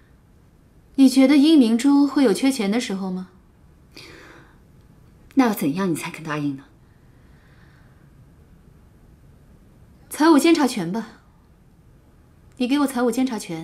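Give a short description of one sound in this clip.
A young woman speaks close by, questioning with animation.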